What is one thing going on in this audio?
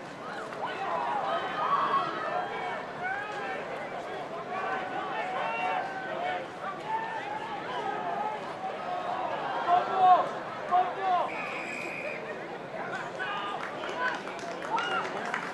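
Men shout to each other on an open field.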